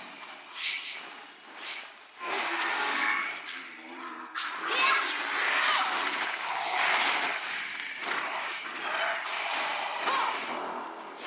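Fantasy video game spell effects whoosh and crackle during a battle.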